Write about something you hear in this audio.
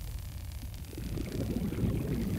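Bubbles gurgle underwater.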